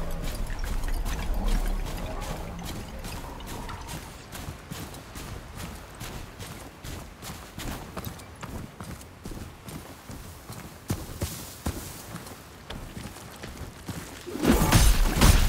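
Footsteps run quickly over sand and gravel.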